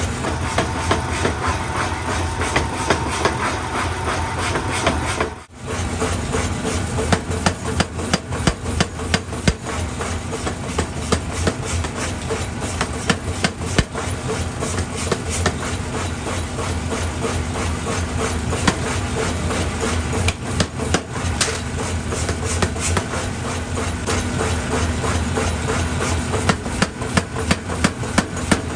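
A power hammer pounds hot metal in rapid, heavy blows.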